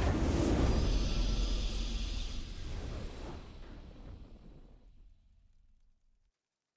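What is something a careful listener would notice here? A triumphant game fanfare plays loudly and fades away.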